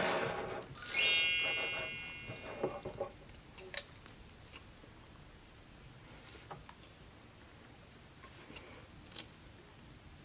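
A metal coffee pot clinks faintly as it is handled.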